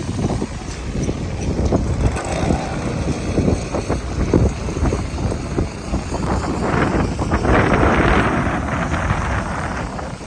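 A concrete pump engine rumbles steadily.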